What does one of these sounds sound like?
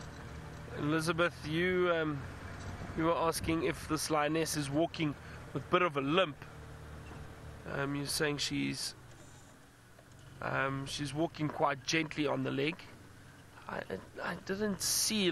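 A man talks calmly into a microphone close by.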